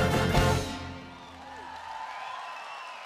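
An orchestra ends on a loud chord that echoes through a large hall.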